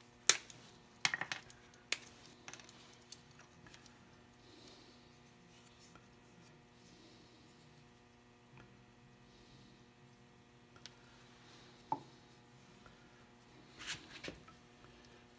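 Tools knock and click against wood now and then.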